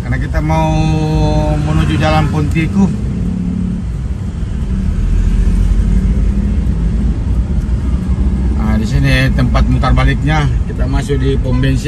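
Motorcycle engines buzz in passing traffic nearby.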